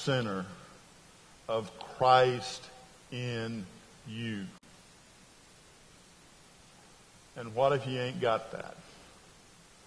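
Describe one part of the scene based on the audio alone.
A middle-aged man speaks with animation through a microphone, pausing between phrases, in a large echoing room.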